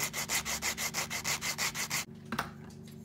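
A file rasps back and forth across wood in quick strokes.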